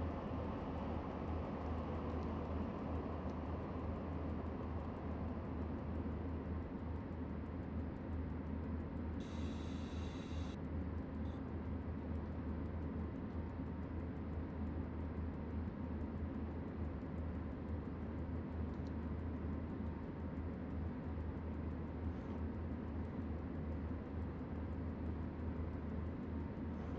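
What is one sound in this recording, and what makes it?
A train's wheels rumble over the rails.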